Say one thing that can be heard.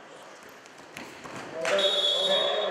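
A wrestler thuds onto a mat.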